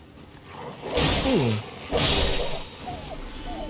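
Heavy blows strike with a wet slashing impact.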